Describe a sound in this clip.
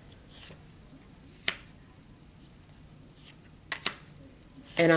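Cards are laid down on a table with soft taps.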